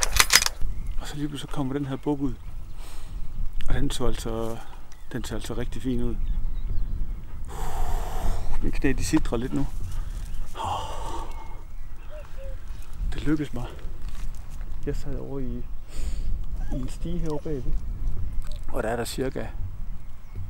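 A man speaks quietly and close by, in a hushed voice.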